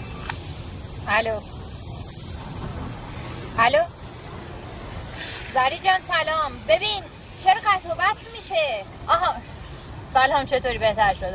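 A young woman speaks into a phone.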